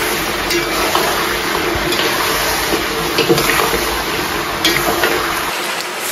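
A metal spatula scrapes and clinks against a wok.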